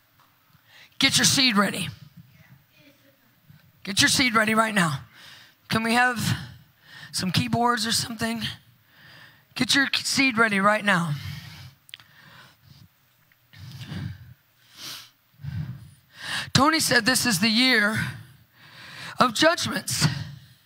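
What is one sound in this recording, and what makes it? A woman speaks with animation through a microphone and loudspeakers in a large room.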